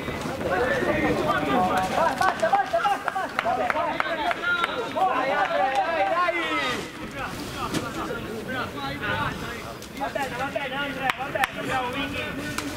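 A man shouts loudly outdoors, close by.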